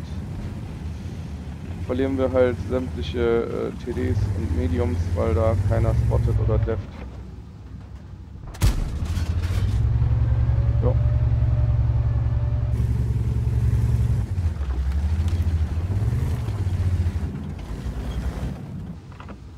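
A tank engine rumbles and roars.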